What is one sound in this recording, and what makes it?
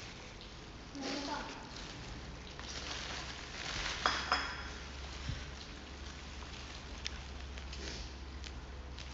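A young woman speaks softly close by.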